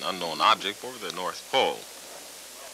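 A man speaks calmly into a telephone.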